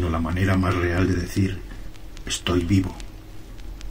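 An elderly man speaks in a low, deep voice close to the microphone.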